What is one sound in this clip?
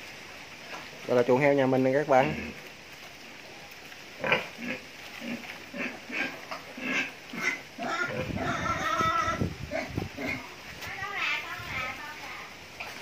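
A pig squeals loudly nearby.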